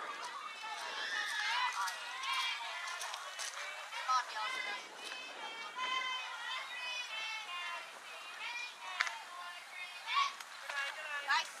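Young girls chant and cheer loudly outdoors.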